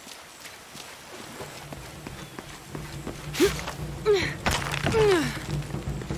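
Footsteps thud on a wooden walkway.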